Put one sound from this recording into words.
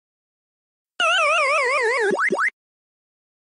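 A descending electronic tune plays.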